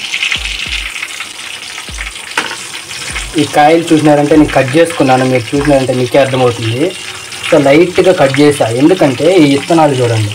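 Oil sizzles gently in a pan.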